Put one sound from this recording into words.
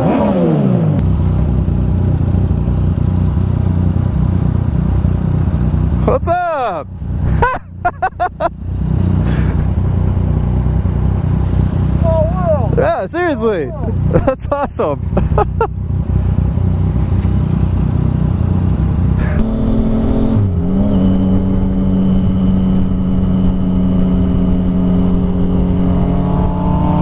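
A motorcycle engine rumbles and hums up close.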